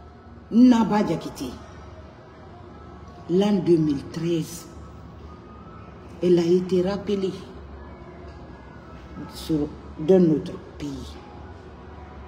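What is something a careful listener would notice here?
A woman sobs and speaks in a tearful voice close to a microphone.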